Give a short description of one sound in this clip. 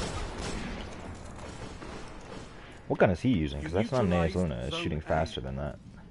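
Gunshots crack in quick bursts.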